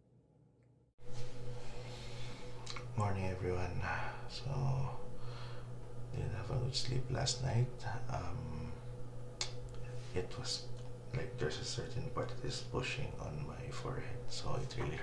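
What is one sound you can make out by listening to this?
A man speaks calmly, close to the microphone.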